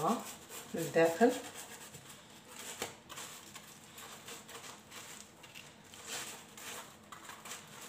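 A knife saws through crusty flatbread.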